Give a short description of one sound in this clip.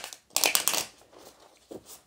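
Cards are shuffled with a quick riffling patter.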